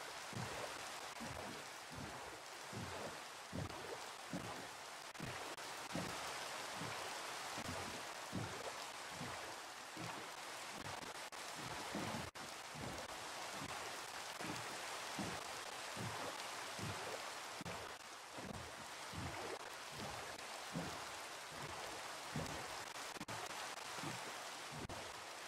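Steady rain falls and patters on water.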